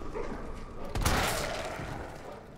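A gunshot bangs loudly and echoes.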